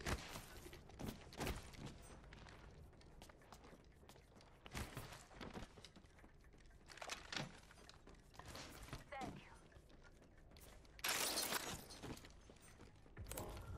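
Quick footsteps patter on a hard metal floor.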